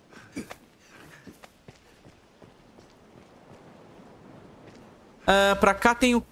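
Footsteps scuff and tap on rock.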